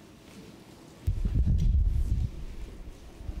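A microphone thumps as it is handed over.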